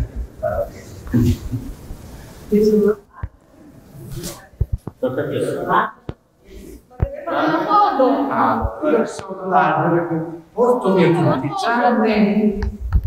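A group of adults talk and laugh together nearby in an echoing room.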